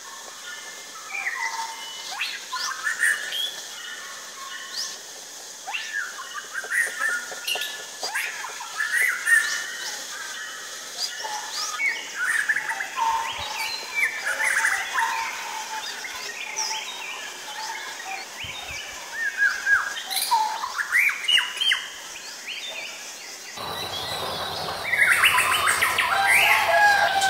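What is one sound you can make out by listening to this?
Songbirds sing varied whistling phrases close by.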